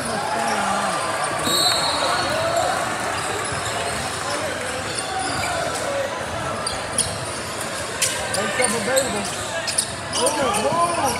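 Spectators talk and call out in a large echoing hall.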